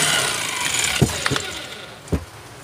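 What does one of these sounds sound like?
A plastic tool housing clicks and knocks as it is handled.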